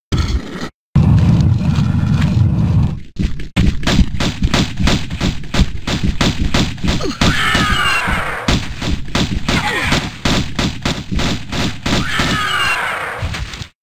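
Pistols fire in rapid bursts of shots.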